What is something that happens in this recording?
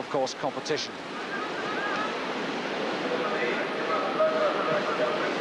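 Whitewater rushes and churns steadily outdoors.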